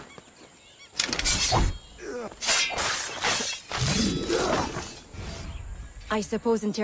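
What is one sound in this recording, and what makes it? A blade strikes and slashes in a brief scuffle.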